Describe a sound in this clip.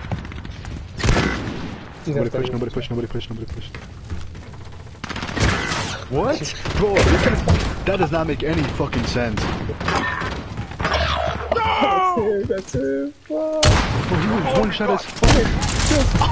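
Gunshots ring out now and then.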